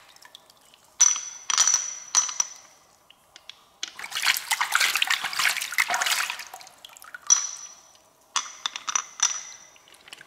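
A pearl clicks and rings against a hard shell.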